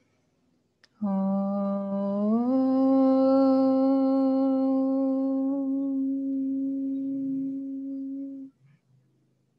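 A woman chants a long, steady tone close by, rising once in pitch.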